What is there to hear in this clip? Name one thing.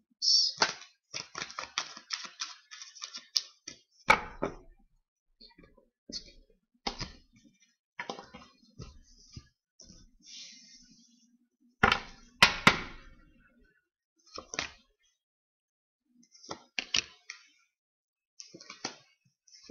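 Cards riffle and flick as a deck is shuffled close by.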